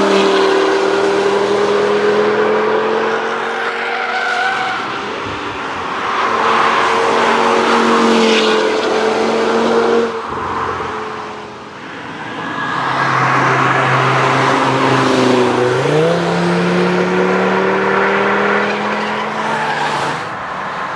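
A car engine roars loudly as a car speeds past on a track, its pitch rising and falling with gear changes.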